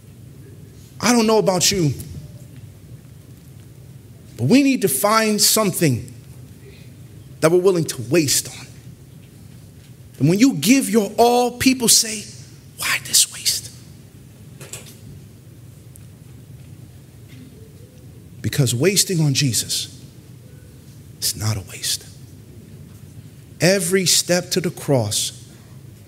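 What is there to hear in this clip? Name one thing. A man preaches into a microphone in bursts with pauses, his voice echoing in a large room.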